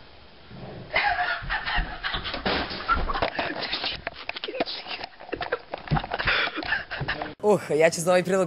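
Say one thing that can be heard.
A young man shouts and laughs close by.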